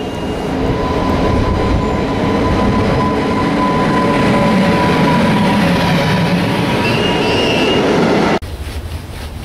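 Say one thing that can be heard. A freight train rumbles and clatters past close by.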